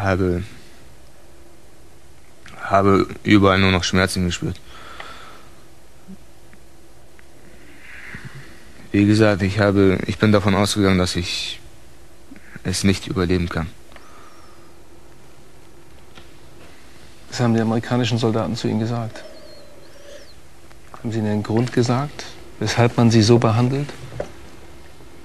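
A man speaks calmly and close by, in short bursts with pauses.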